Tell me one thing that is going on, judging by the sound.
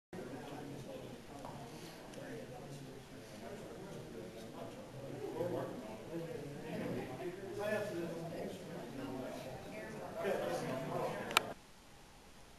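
A crowd of people chatters in a room.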